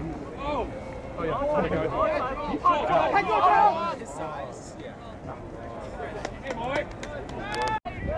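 Several young men shout and cheer nearby outdoors.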